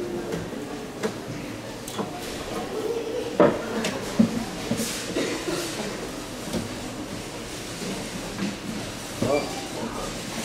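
Wooden branches knock softly against glass.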